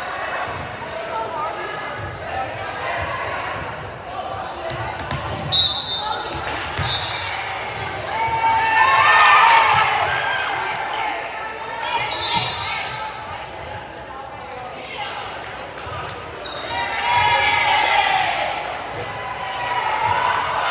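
Shoes squeak on a hard gym floor.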